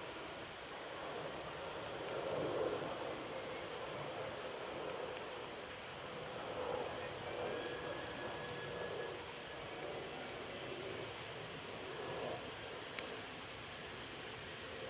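Horses' hooves thud on grass as a carriage passes.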